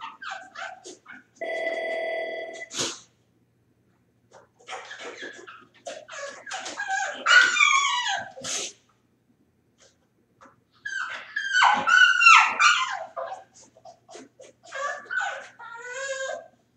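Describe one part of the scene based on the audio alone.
A dog whines and howls from inside a crate, close by.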